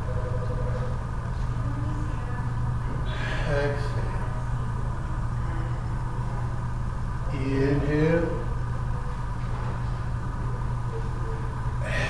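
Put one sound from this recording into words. Ceiling fans hum steadily.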